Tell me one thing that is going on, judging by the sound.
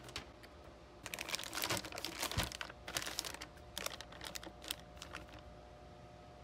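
A plastic bag crinkles and rustles as hands press on it.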